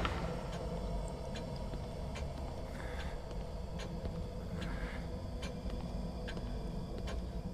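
Footsteps tread slowly across a hard floor.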